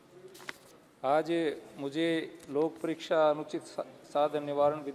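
A man reads out loud into a microphone.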